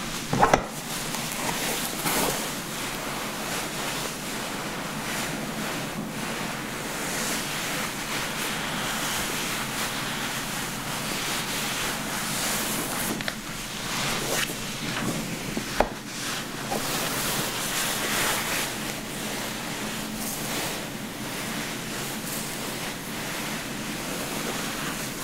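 A towel rubs and rustles against wet hair close by.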